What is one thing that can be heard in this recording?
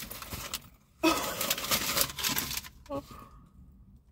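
A young woman gasps and exclaims loudly.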